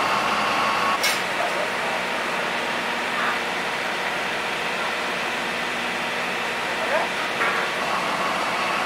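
Metal clanks as railway cars are coupled.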